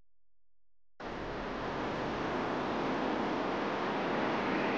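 Strong wind roars and hisses in a snowstorm.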